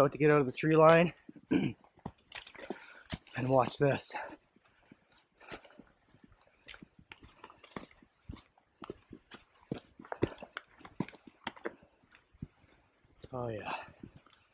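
Footsteps crunch on dry leaves and rocks.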